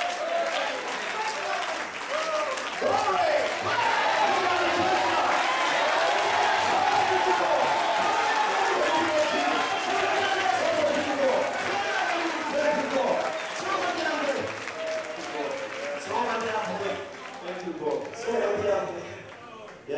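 A large crowd sings, shouts and ululates loudly in an echoing hall.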